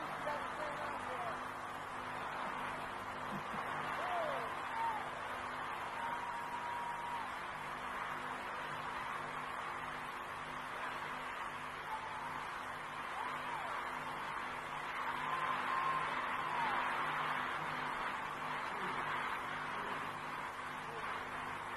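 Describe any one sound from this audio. A vocal group sings live on stage over amplified music.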